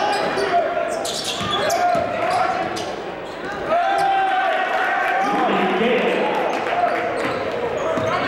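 Sneakers squeak sharply in an echoing gym.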